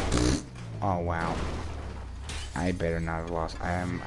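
A car crashes heavily onto the ground.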